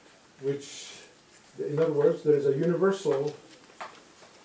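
A man speaks calmly in a lecture voice, slightly echoing.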